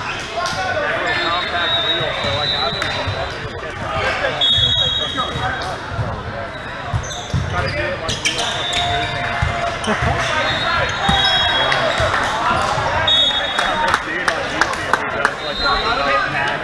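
Players' sneakers squeak sharply on the court.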